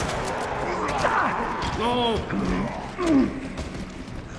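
A zombie groans and snarls up close.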